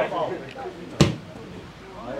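A ball is kicked hard.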